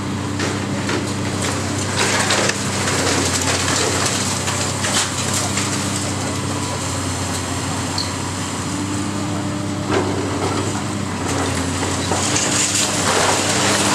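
Water from a hose sprays with a steady hiss.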